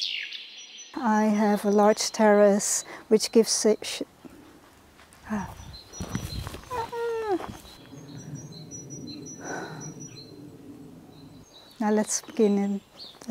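A young woman talks with animation close by, outdoors.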